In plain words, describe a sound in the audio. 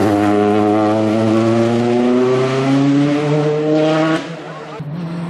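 A rally car's engine revs high as it accelerates away.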